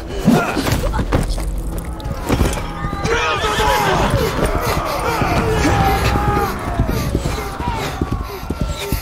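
A man shouts angrily.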